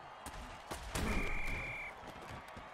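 Armoured players collide with a heavy thud.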